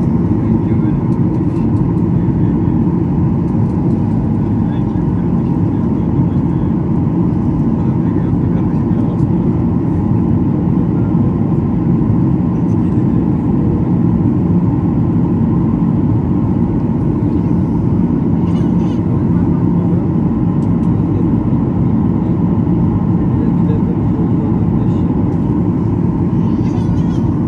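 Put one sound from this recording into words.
A jet engine roars steadily and loudly close by, heard from inside the cabin.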